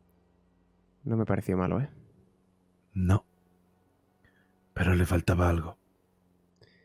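A young man speaks into a close microphone with animation.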